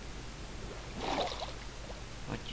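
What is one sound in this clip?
Water splashes briefly as something breaks the surface.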